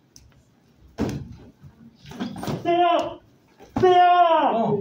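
A punch thuds against a padded chest guard.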